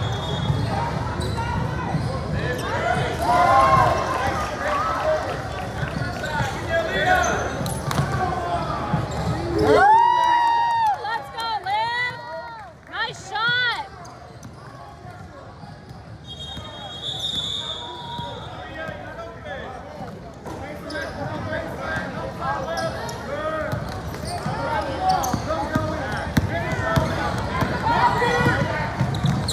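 A crowd of spectators chatters and cheers.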